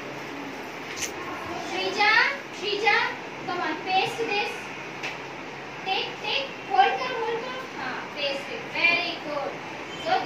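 Young children talk and call out excitedly close by.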